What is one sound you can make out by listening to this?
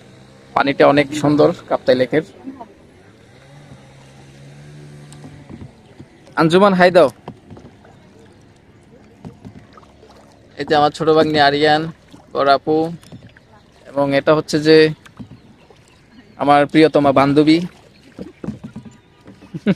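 A paddle splashes softly in calm water.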